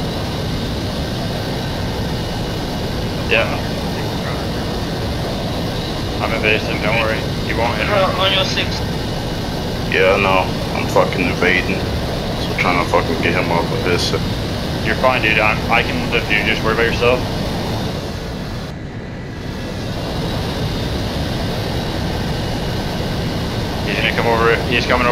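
A jet engine roars steadily as an aircraft flies low.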